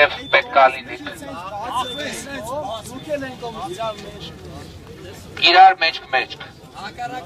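A man speaks loudly through a megaphone outdoors.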